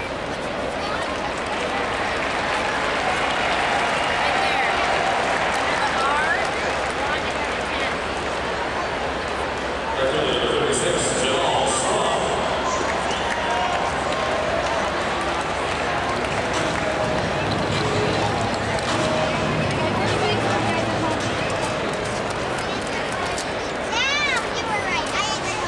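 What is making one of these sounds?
A large stadium crowd murmurs and chatters steadily all around.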